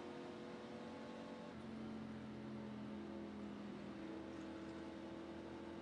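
A race car engine hums steadily at high speed.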